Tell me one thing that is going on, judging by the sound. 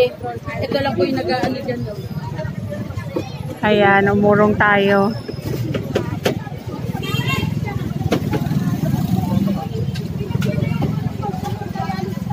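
Men talk and call out loudly nearby.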